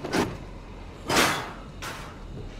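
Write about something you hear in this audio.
A metal grate is kicked open with a loud clang.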